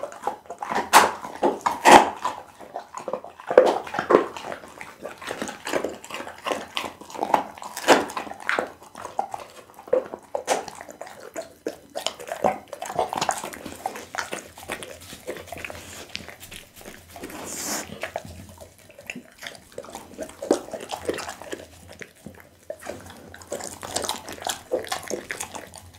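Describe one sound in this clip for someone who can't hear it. A dog chews and smacks wetly close to a microphone.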